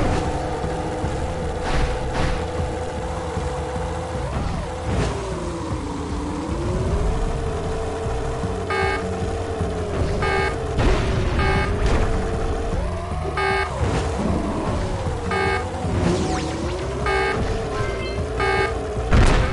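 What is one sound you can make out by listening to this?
A hovering vehicle's engine hums steadily, its pitch rising and falling.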